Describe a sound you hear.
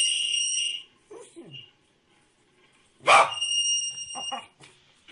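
A rubber toy squeaks in long, high bursts.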